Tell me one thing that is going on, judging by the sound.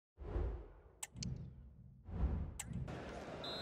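A game menu clicks briefly twice.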